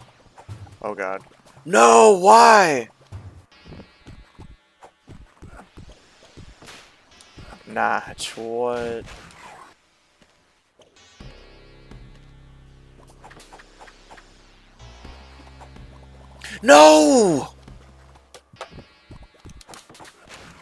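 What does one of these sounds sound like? Retro video game sound effects chirp and blip in quick bursts.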